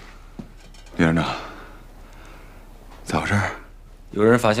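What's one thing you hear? A man speaks in a tense, low voice close by.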